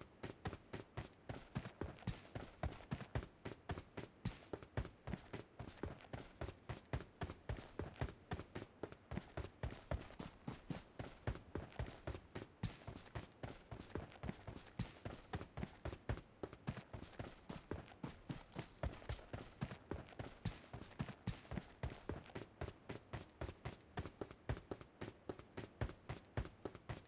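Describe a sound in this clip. Footsteps thud quickly and steadily on the ground as a game character runs.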